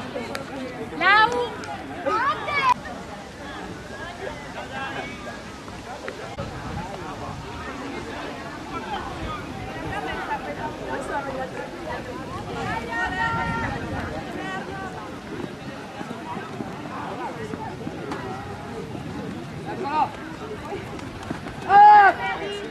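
Young spectators shout and cheer loudly now and then.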